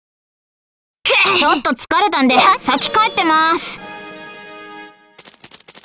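A short game fanfare plays, bright and ringing.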